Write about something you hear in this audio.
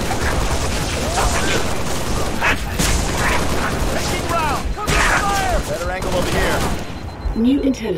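Energy weapons fire in rapid bursts with loud blasts.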